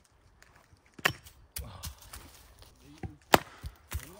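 An axe chops into wood with sharp, hard knocks outdoors.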